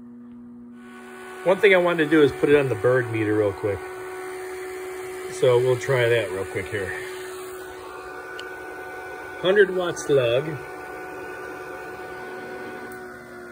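A cooling fan whirs steadily.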